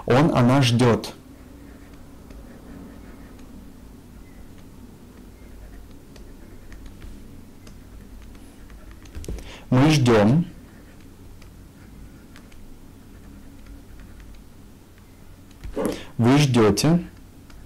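A young man speaks calmly and clearly into a close microphone, in short bursts with pauses.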